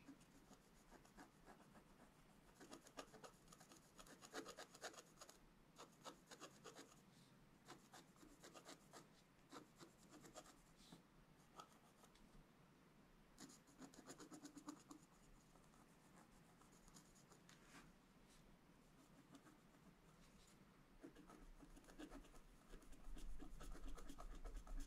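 A wooden stylus scratches and scrapes across a card in short, quick strokes, up close.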